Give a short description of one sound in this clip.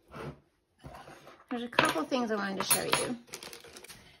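Metal measuring spoons clink together.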